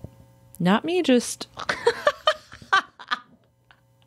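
A young woman laughs loudly.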